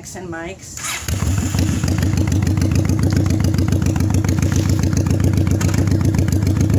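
A motorcycle engine starts and idles with a loud, rapid rumble.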